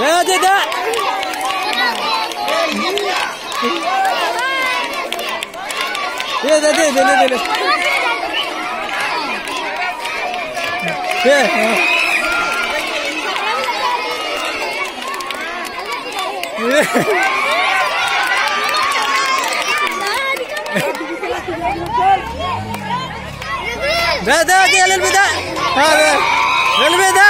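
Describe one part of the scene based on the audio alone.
A large crowd of children shouts and cheers outdoors.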